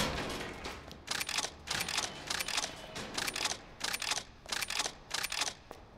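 Footsteps thud on stairs.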